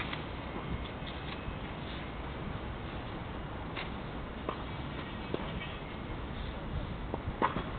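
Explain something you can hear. A tennis racket strikes a ball, heard from afar outdoors.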